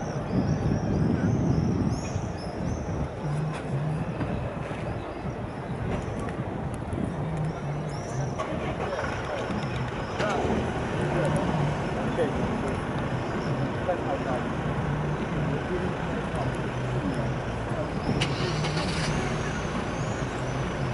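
A crowd of men and women chatters in a low murmur some distance away outdoors.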